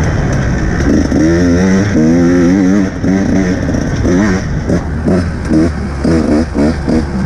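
A dirt bike engine revs hard close by, rising and falling in pitch.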